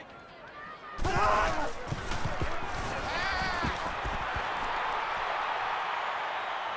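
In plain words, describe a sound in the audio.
Football pads crash together as players collide.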